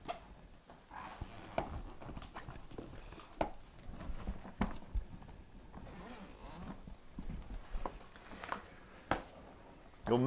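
Fabric rustles as a suitcase is handled and opened.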